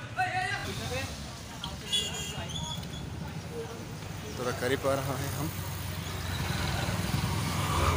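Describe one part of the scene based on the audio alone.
Motorbikes ride past on a street.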